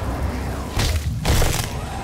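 A fist strikes a creature's flesh with a heavy, wet thud in a melee blow.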